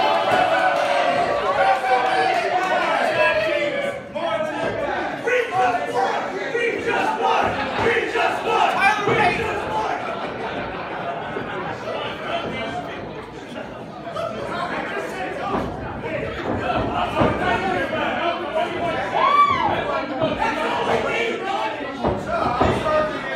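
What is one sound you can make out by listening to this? A crowd cheers and chants loudly in a large echoing hall.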